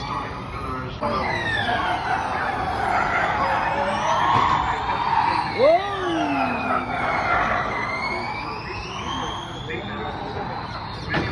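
A race car's electric motor whines loudly as it speeds past and fades away.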